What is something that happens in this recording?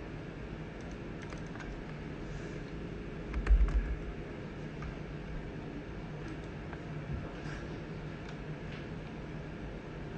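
Keyboard keys click softly as someone types.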